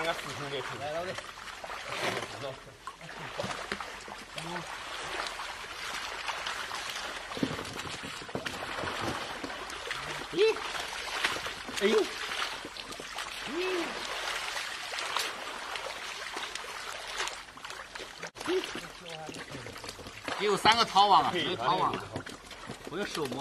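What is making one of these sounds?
Water splashes and sloshes as people wade through a shallow stream.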